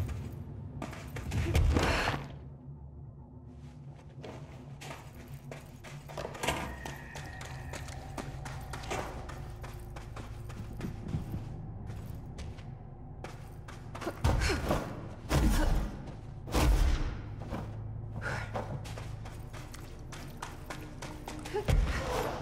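Footsteps crunch quickly over rocky ground.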